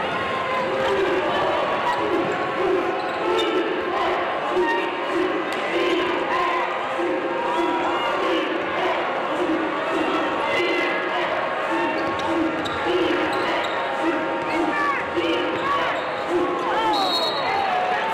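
A crowd chants in a steady rhythm.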